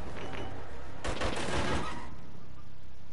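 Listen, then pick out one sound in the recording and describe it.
A heavy metal bin lid bangs.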